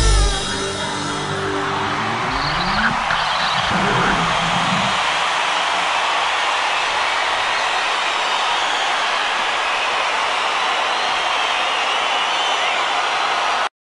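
A huge crowd cheers and roars.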